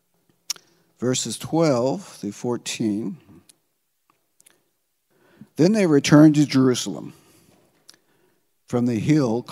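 An elderly man speaks calmly through a microphone in pauses, in a large echoing hall.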